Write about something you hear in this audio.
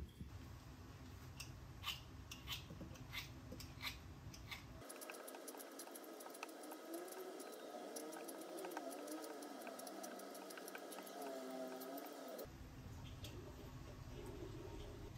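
A peeler scrapes the skin off a pear.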